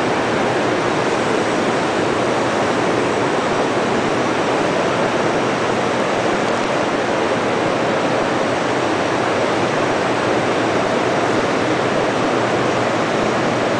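A conveyor belt rattles as it runs.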